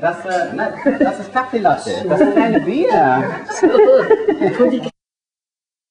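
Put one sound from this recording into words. An elderly woman talks casually close by.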